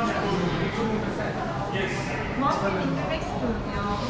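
Adult men and women chatter nearby in a crowd.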